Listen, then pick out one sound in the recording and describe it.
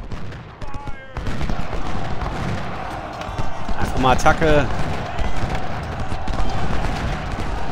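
Cannons boom in the distance.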